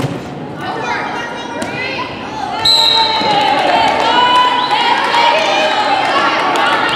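A volleyball is struck with a thump.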